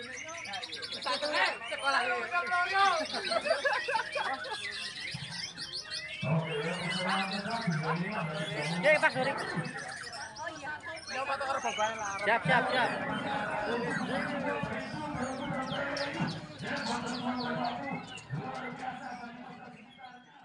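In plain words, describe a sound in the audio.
A crowd of men and women talk and laugh loudly close by, outdoors.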